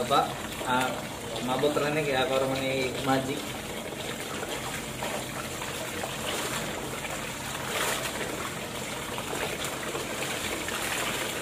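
Cloth rustles and splashes in water as it is scrubbed by hand.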